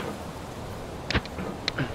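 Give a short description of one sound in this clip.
A metal hammer knocks and scrapes against rock.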